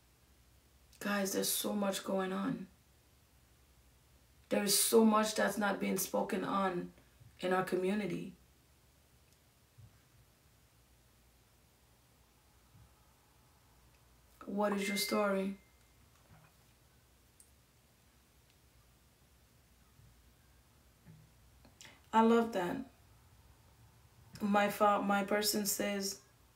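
A woman speaks calmly in short bursts, close by.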